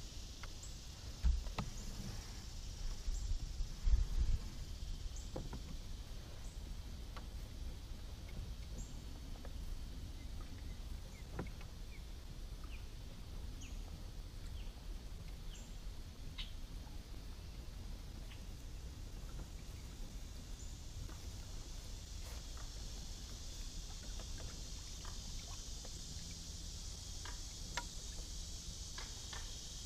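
Water laps softly against the hull of a gliding kayak.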